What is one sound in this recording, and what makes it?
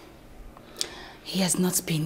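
Another young woman answers calmly nearby.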